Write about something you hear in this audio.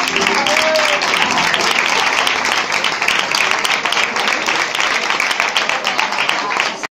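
A crowd claps along in a quick rhythm.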